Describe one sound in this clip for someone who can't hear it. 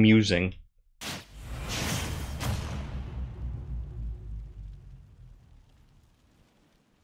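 A deep game whoosh rises and slowly fades away.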